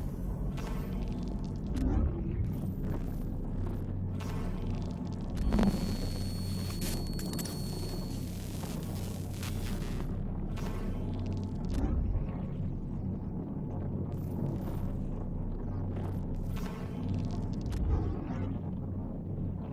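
Electronic glitches crackle and buzz.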